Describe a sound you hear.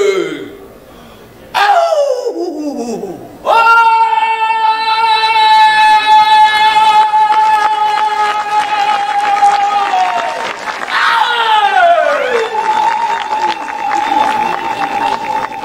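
A group of men let out loud, long, drawn-out war cries that slide downward at the end.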